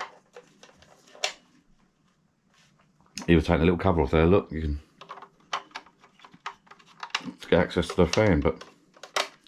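A plastic device casing clicks and knocks as hands handle it close by.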